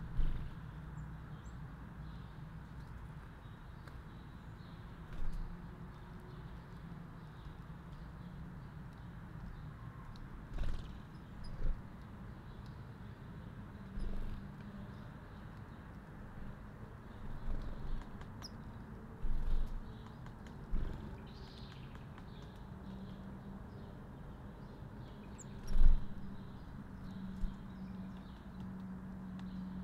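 Light rain patters steadily on leaves outdoors.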